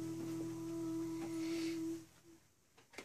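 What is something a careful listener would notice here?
An acoustic guitar rings softly.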